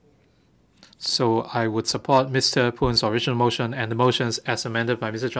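An elderly man reads out a speech through a microphone.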